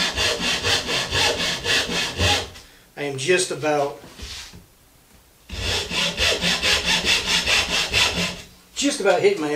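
A tool scrapes wood in quick, even strokes.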